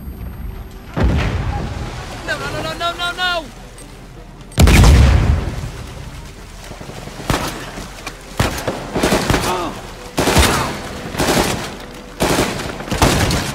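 Gunshots crack loudly again and again.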